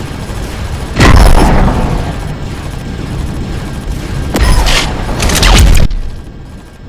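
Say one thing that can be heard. Loud blasts boom and roar.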